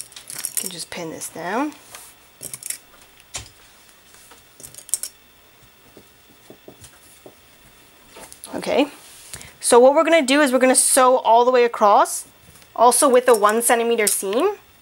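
Cloth rustles softly as hands smooth and fold it.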